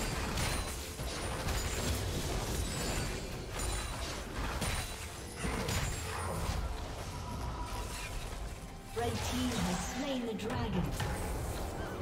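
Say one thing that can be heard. Fantasy game combat effects whoosh and clash repeatedly.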